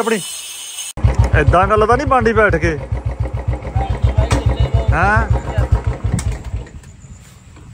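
A motorcycle engine idles with a steady, rapid putter.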